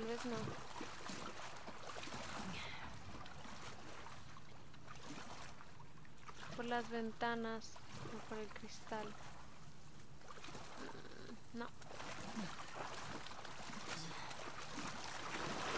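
Water sloshes and splashes.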